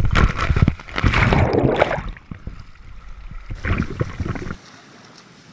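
Water splashes loudly and close by.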